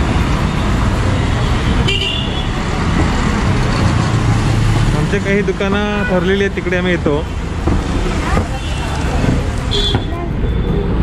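Traffic rumbles along a busy street outdoors.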